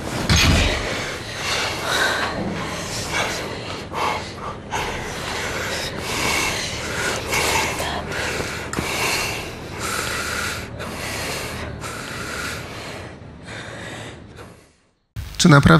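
A woman speaks softly up close.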